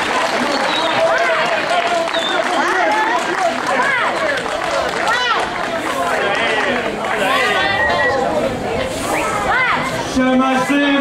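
Men call out and whoop with animation.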